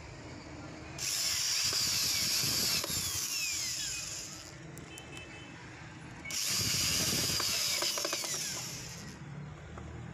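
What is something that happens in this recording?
A power drill whirs, driving screws into a fan housing.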